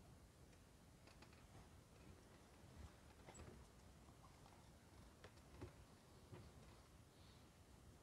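Bedding rustles as a young man shifts in bed.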